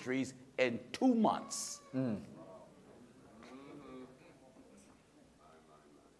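A man speaks emphatically into a microphone in a large echoing hall.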